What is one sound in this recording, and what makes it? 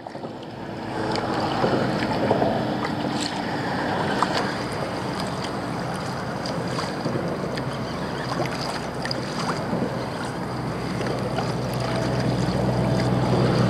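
Water laps and splashes against a kayak hull.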